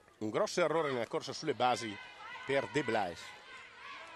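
A softball smacks into a catcher's mitt.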